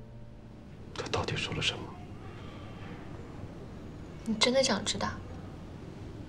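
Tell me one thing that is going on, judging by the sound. A young man speaks quietly and tensely nearby.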